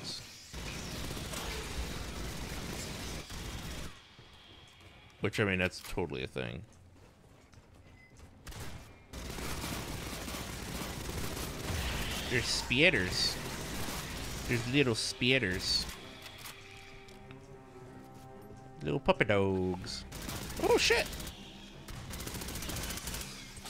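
A heavy gun fires rapid bursts of shots.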